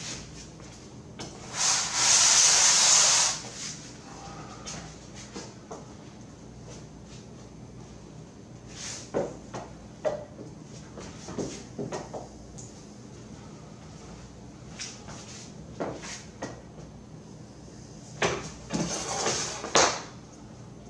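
Tools knock and clatter on a glass sheet.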